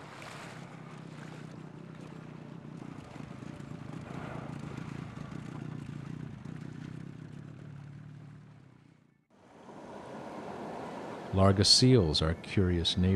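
Waves slosh and lap on open water.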